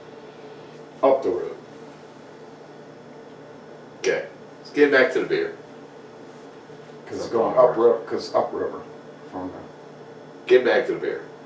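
A second man speaks in reply, close by.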